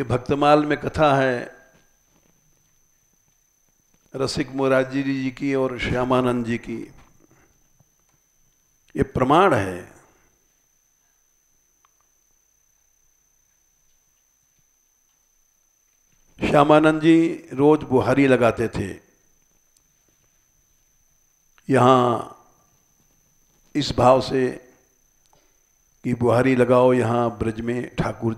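An elderly man speaks calmly into a close microphone, pausing often between phrases.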